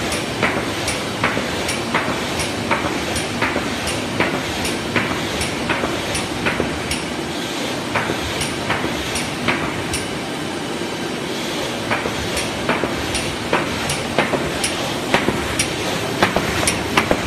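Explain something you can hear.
A large machine runs with a loud steady rumble and clatter.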